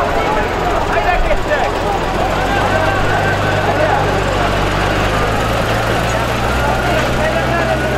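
Horses trample and jostle on muddy ground nearby.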